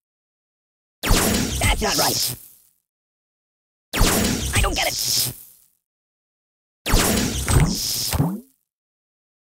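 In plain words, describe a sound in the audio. A cartoon toy is blasted with loud crashing game effects, in bursts.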